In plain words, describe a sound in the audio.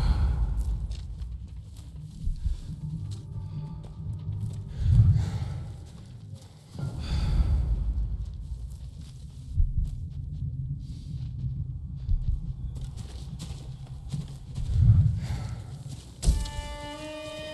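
Footsteps crunch softly over grass and gravel.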